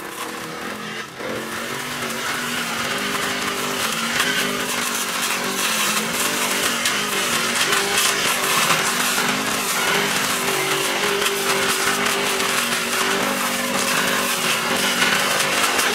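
Cut grass and weeds rustle and spatter against the ground.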